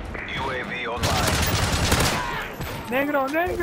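An automatic rifle fires in bursts in a video game.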